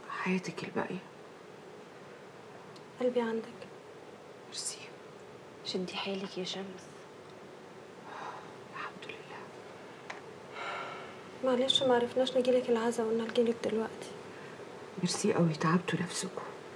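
Women talk calmly with one another, close by.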